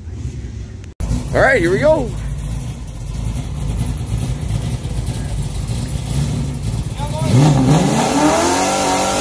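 A race car engine rumbles at idle.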